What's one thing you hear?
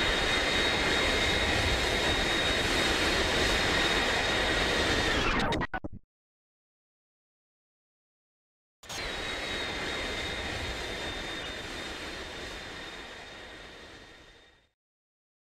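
A jet engine roars steadily, then fades away.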